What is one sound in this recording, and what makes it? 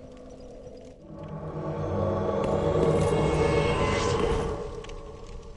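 A shimmering magical whoosh swells up and then fades away.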